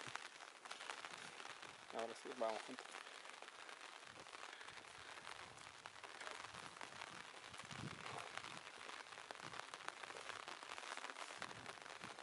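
Wind blows steadily across an open hillside.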